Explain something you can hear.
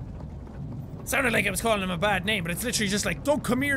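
Another young man speaks quickly and excitedly into a close microphone.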